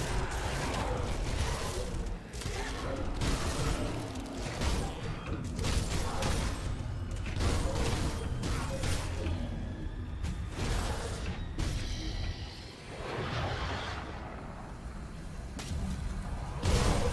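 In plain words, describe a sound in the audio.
Magic spell effects and combat blows crash in rapid bursts.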